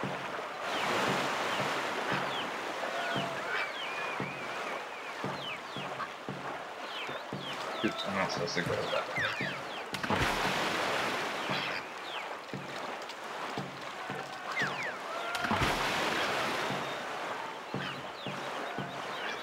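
Paddles splash rhythmically through water.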